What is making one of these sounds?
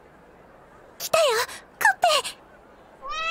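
A young girl speaks excitedly.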